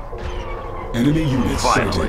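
A laser beam fires with a sharp electric hum.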